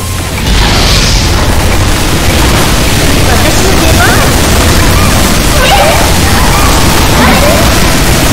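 Explosions boom and crackle in a game.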